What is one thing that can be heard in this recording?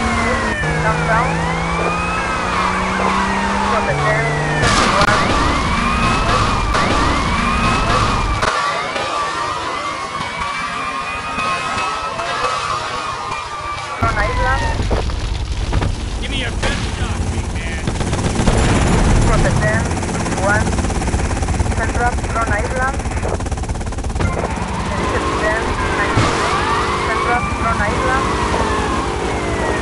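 A police siren wails up and down.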